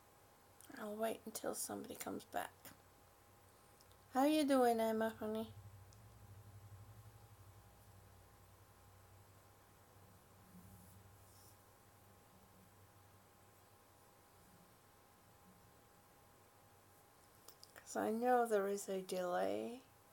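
An older woman speaks calmly and close by.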